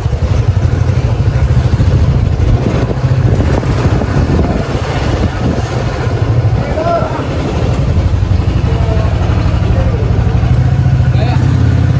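A motorcycle engine putters steadily up close.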